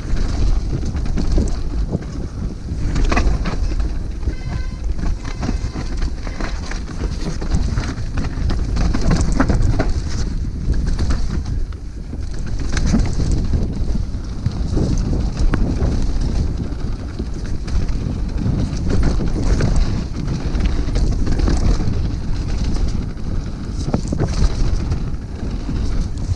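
A downhill mountain bike rattles and thumps over a muddy dirt trail.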